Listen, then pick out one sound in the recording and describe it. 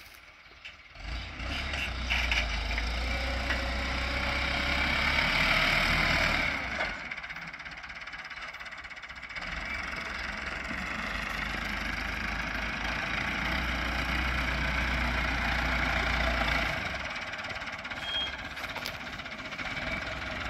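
A tiller churns through the earth.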